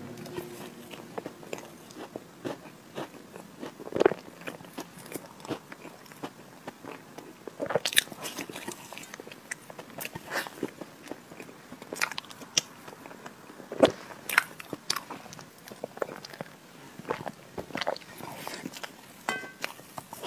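A young woman bites into cake close to a microphone.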